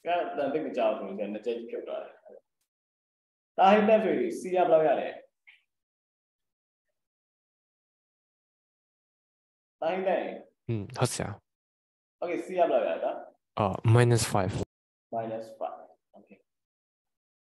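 A young man speaks calmly over an online call, explaining in short bursts.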